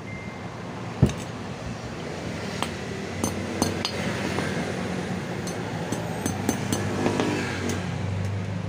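A hammer taps sharply on metal.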